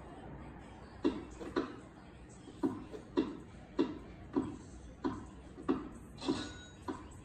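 A tennis video game plays ball hits through a television speaker, in a quick regular rally.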